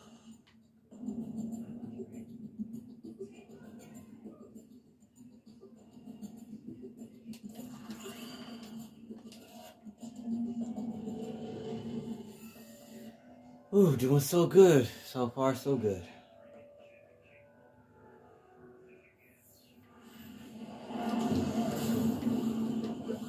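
Video game music plays through a television speaker.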